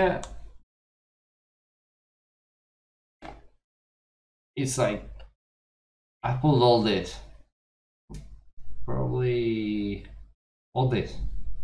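A young man talks with animation, close to a microphone, in short bursts with pauses.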